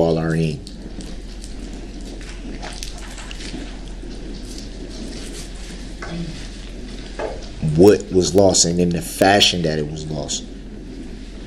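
An adult man speaks with emphasis.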